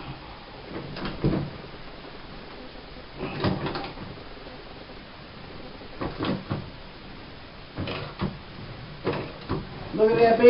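A ratchet wrench clicks as it turns a metal fitting.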